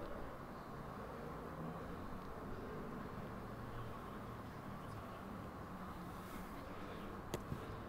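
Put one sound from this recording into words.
A small crowd murmurs faintly in an open-air stadium.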